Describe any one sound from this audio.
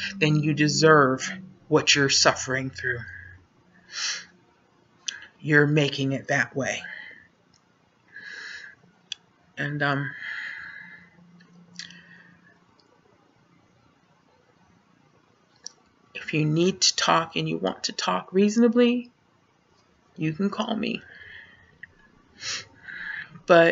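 A woman talks close to a microphone, calmly, with pauses.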